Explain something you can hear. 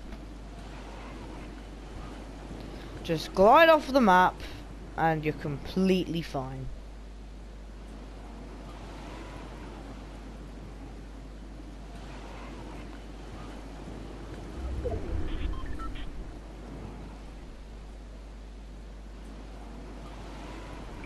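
Wind rushes steadily past a glider descending through the air.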